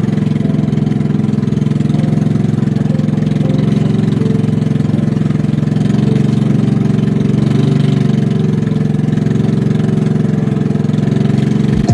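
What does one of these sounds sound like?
Water splashes against the hull of a moving boat.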